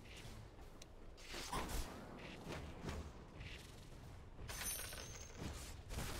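Fantasy spell effects whoosh and clash in a battle.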